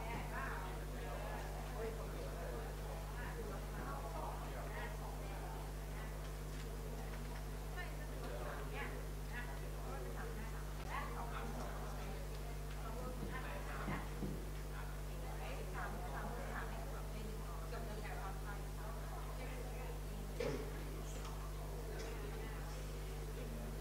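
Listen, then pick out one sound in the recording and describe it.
A woman speaks calmly through a handheld microphone and loudspeaker.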